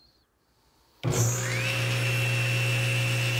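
A table saw motor starts up and whines steadily.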